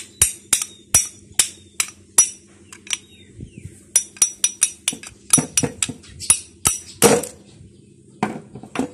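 A ratchet wrench clicks sharply as it is cranked back and forth.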